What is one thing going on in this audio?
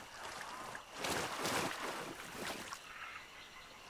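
Water splashes as a person wades through it.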